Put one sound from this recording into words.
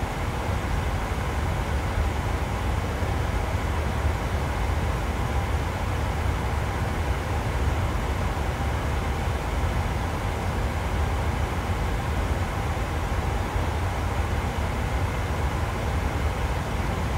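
Jet engines roar with a steady, low drone.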